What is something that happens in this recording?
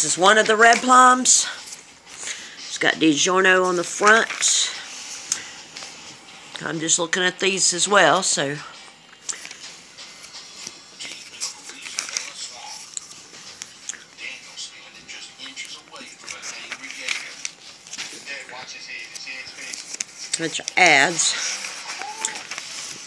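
Glossy paper pages rustle and flap as they are turned.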